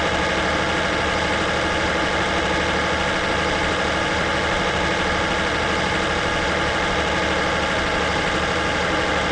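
A truck engine hums steadily while driving at speed.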